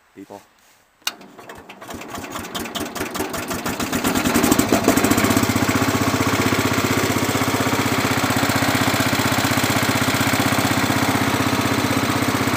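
An old tractor engine starts up and speeds into a loud, steady chugging idle close by.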